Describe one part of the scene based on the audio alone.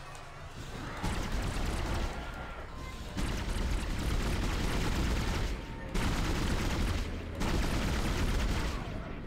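A weapon fires loud, sharp blasts in quick bursts.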